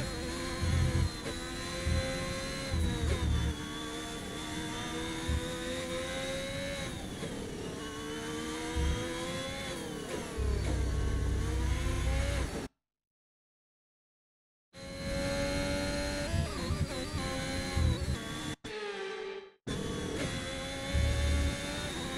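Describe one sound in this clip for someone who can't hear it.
A racing car engine whines, rising and falling in pitch as the car shifts gears.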